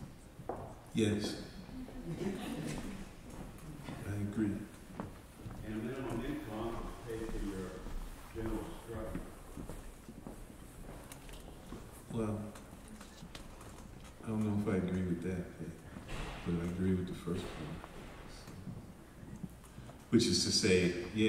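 A man speaks calmly through a microphone in a large room, with pauses.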